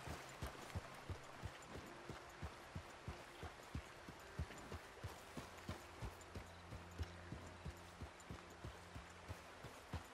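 A horse's hooves thud steadily on a dirt trail.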